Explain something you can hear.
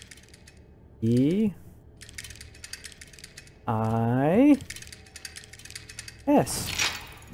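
Metal dials click as they turn.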